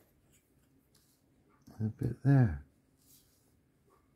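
A hobby knife scrapes lightly at a small plastic part.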